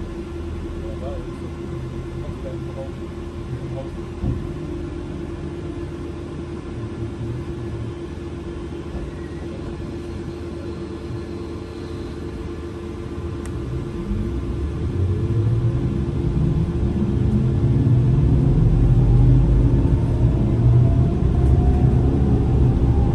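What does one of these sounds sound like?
A vehicle engine idles with a steady hum, then revs up as the vehicle pulls away.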